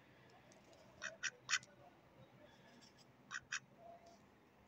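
Ducks quack loudly and close by in short bursts.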